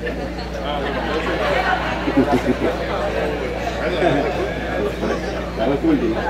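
An elderly man laughs into a microphone.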